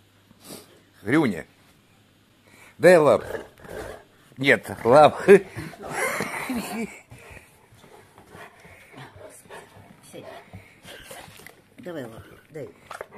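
A large dog whines and grumbles loudly in rising and falling moans, close by.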